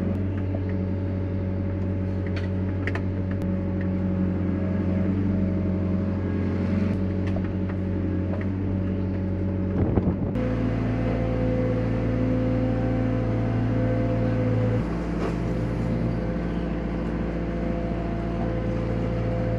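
A machine's diesel engine hums steadily up close from inside its cab.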